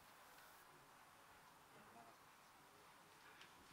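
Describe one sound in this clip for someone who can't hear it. A young man speaks softly close by.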